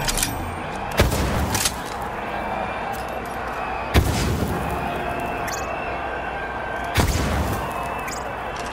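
Explosions boom with a deep rumble.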